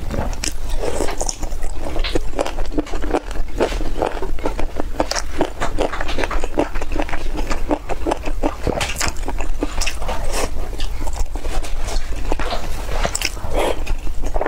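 A young woman chews food wetly and smacks her lips close to a microphone.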